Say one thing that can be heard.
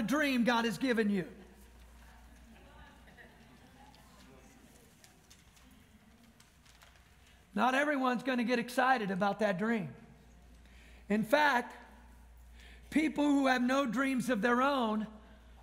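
A man speaks calmly into a microphone, in short phrases with long pauses.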